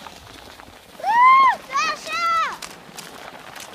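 A child squeals while sliding down a snowy slope.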